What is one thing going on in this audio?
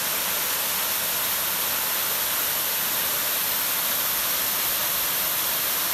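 A waterfall splashes steadily onto rocks.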